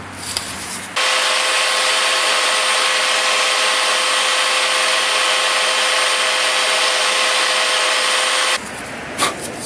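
A belt sander whines loudly and steadily.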